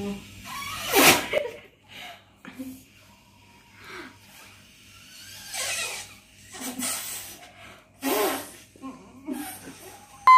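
A young girl giggles.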